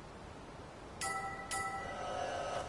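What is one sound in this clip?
A short menu chime sounds.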